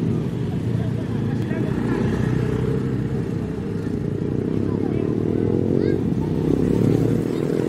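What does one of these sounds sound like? A motor scooter passes on the road.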